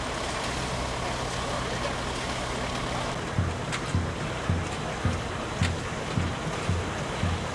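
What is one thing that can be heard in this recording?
An old threshing machine rumbles and thumps steadily.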